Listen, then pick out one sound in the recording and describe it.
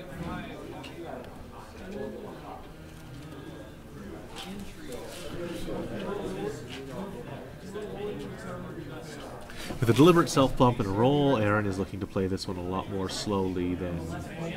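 Plastic game pieces click softly on a table.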